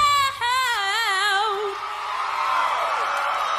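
A young woman sings powerfully into a microphone with a wavering voice.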